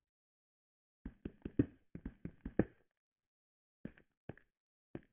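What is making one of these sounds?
A pickaxe chips at stone in quick, sharp knocks.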